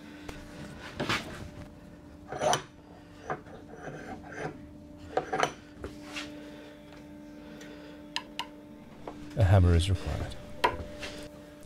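Small tools click and tap against wood.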